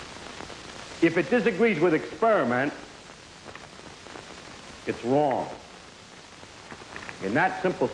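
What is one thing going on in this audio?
A man lectures with animation, heard through a microphone.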